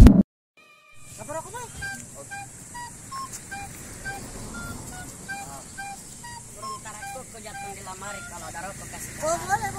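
A young man and a young woman talk quietly outdoors.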